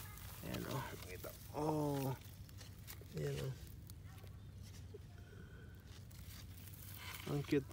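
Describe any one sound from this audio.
Strawberry leaves rustle as a hand picks berries.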